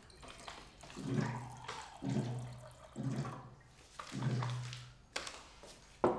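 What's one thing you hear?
Water gurgles as it pours from a water dispenser into a cup.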